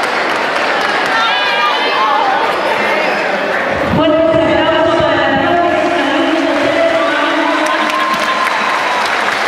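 Young women shriek and shout with excitement.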